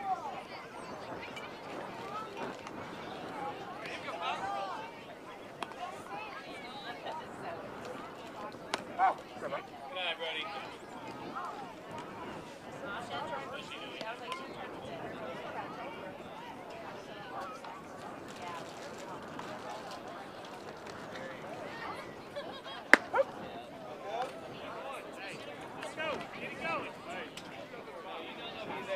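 Children and adults shout and chatter across an open field outdoors.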